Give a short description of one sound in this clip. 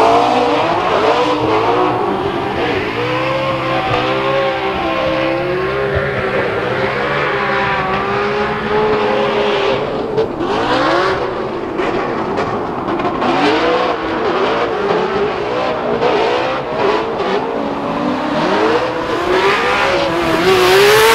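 Tyres screech and squeal on the track.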